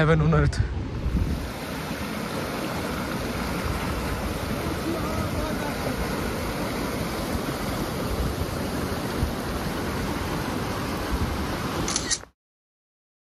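A fast river rushes and roars nearby.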